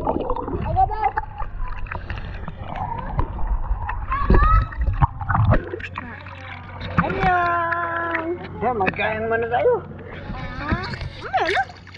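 Water splashes in a pool.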